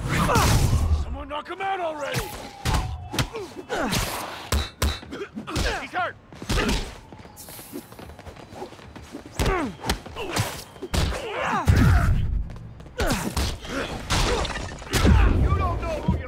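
A man shouts taunts nearby.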